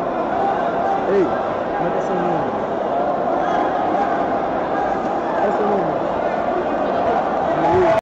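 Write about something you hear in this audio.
Spectators shout out now and then from the stands.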